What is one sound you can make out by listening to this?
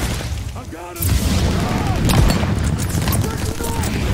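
An explosion booms and rumbles nearby.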